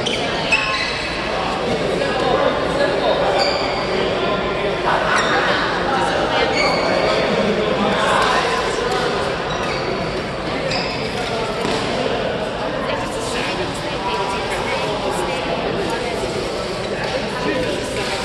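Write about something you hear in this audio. Many young people's voices chatter and call out in a large echoing hall.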